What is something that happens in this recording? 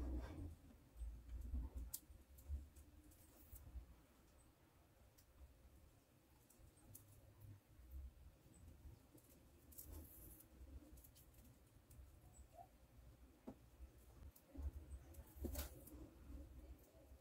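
Plastic beads click softly against each other as hands handle them.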